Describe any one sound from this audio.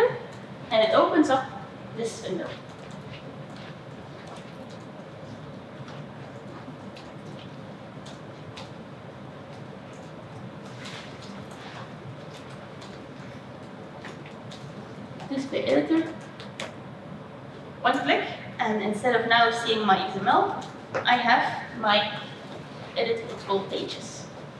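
A young woman speaks calmly into a microphone in a large room with echo.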